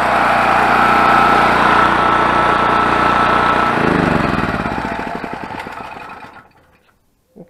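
A generator engine runs loudly, then sputters and winds down to a stop.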